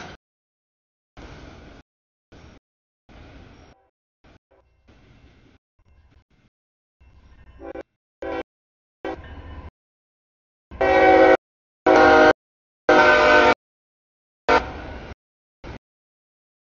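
A railway crossing bell rings.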